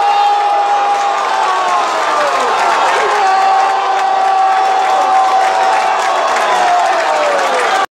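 A large crowd of fans cheers and chants loudly outdoors.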